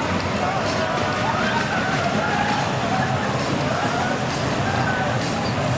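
A small roller coaster rumbles and rattles along its track.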